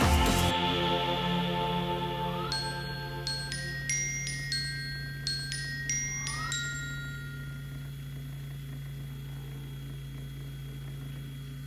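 Sandpaper rubs against spinning brass.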